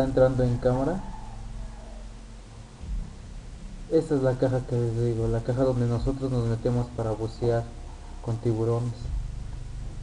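A young man talks with animation into a microphone, up close.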